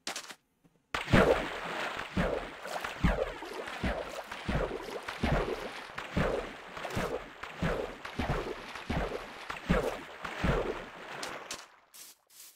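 Water splashes rhythmically as someone swims.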